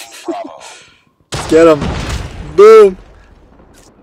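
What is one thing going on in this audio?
A sniper rifle fires a loud shot.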